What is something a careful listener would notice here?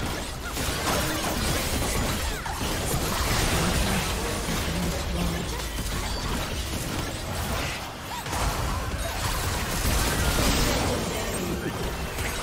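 Game spell blasts and clashing hits ring out in a busy fight.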